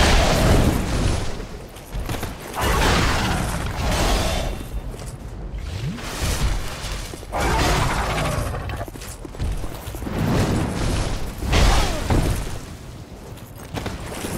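Blades clash and strike with sharp metallic hits.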